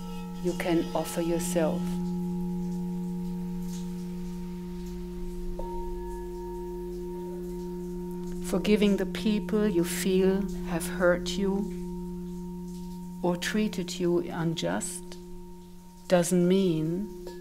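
A woman sings softly into a microphone in short phrases.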